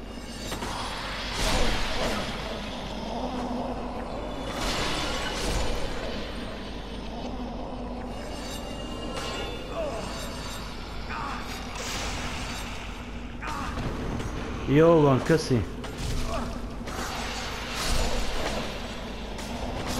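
A sword swishes through the air and strikes.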